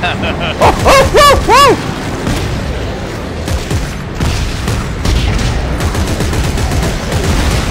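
A gun fires sharp energy shots.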